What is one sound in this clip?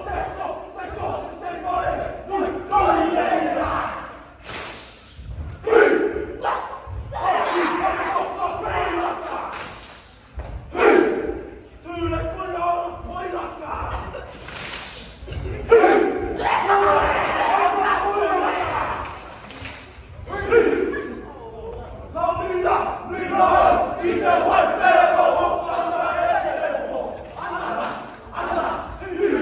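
Hands slap against bodies in rhythm.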